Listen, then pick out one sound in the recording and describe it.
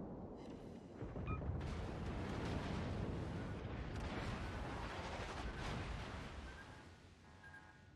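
Shells crash into water with heavy splashes.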